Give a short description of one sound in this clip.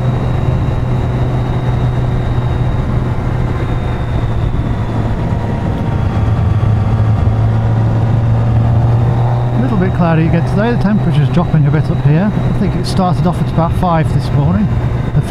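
A motorcycle engine hums while cruising.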